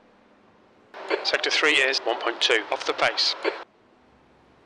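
A man talks with animation through a microphone.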